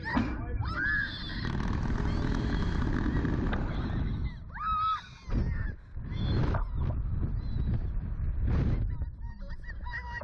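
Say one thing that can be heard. Wind rushes loudly past during a fast ride.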